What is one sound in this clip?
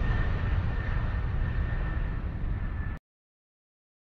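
A jet airliner's engines roar steadily in flight.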